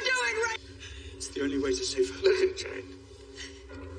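A man speaks tensely up close.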